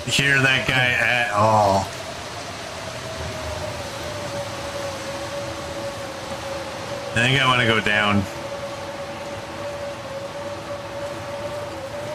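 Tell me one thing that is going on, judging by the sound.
Wind howls steadily in a blizzard.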